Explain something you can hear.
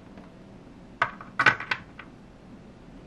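Small plastic toys clack and tap against each other as a hand moves them.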